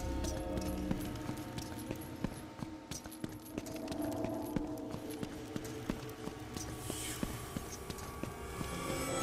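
Footsteps run quickly on a stone floor.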